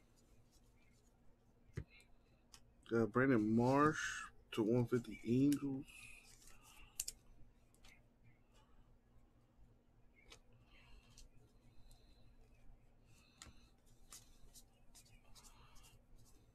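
Trading cards rustle and click softly as they are flipped through by hand.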